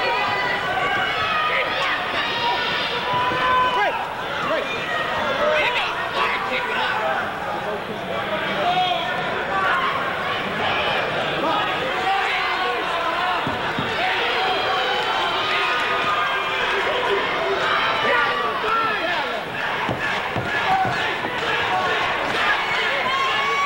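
Boxing gloves thud against bodies in quick blows.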